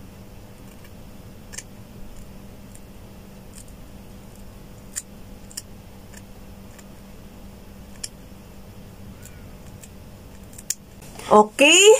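Scissors snip through hair with small crisp clicks.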